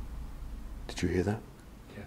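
A man speaks briefly in a low voice close by.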